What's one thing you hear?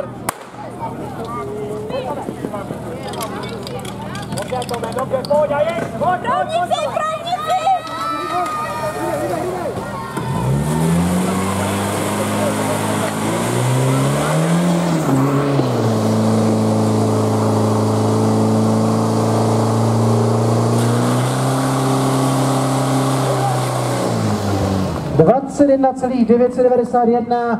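A crowd of adults calls out and shouts outdoors.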